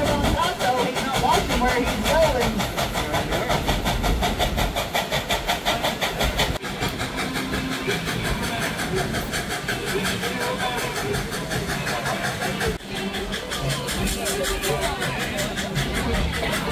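A train rattles and clacks steadily along the rails.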